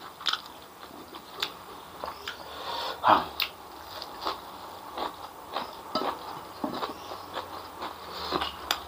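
A man chews food loudly and wetly, close up.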